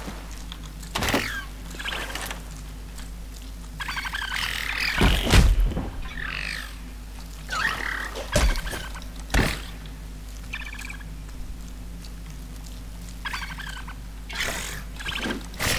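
Sword slashes and hits ring out in quick bursts.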